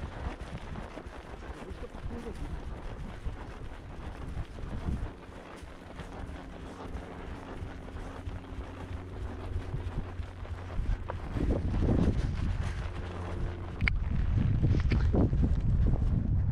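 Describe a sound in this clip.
Wind blusters across the microphone outdoors.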